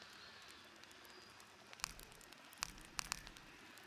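A soft menu click sounds as a selection changes.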